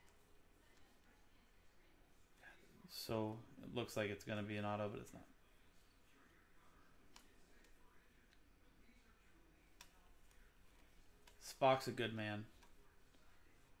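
Trading cards slide and flick softly against each other.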